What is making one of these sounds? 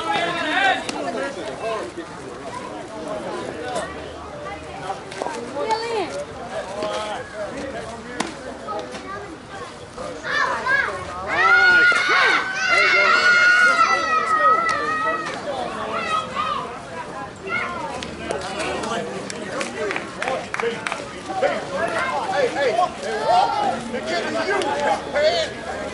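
Several adults talk and call out to one another outdoors.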